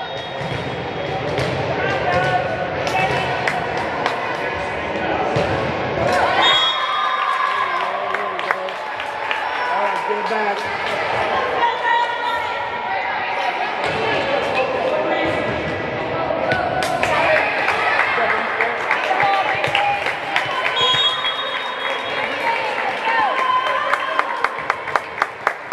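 Voices of a crowd and players echo through a large hall.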